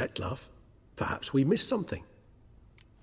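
A second man answers briefly in a deep, gravelly voice.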